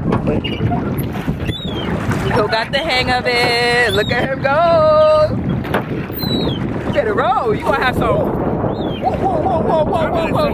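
Oars splash and creak in the water.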